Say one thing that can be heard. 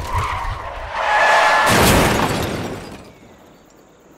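A car crashes into a pole with a loud metallic crunch.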